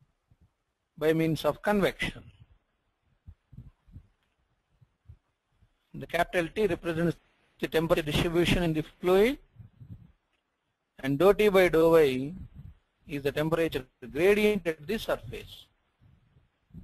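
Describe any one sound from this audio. A middle-aged man speaks calmly into a microphone, as if giving a lecture.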